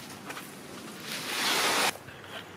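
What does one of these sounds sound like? A large panel scrapes and rustles as it is lifted.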